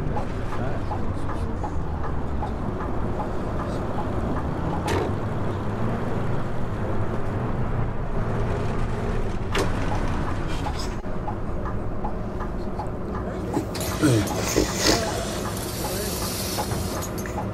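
A bus engine hums steadily as it drives.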